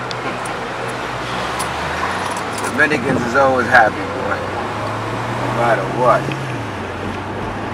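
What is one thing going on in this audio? A man talks calmly inside a car.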